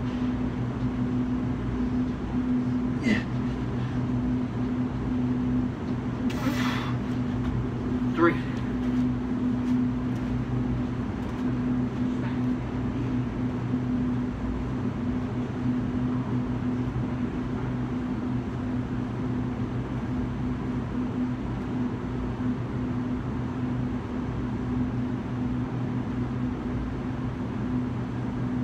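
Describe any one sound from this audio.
Lamps hum steadily.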